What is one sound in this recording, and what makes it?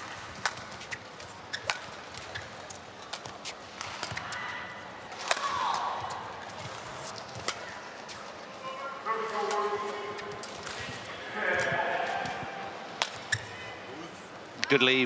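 Rackets strike a shuttlecock in a quick back-and-forth rally in a large hall.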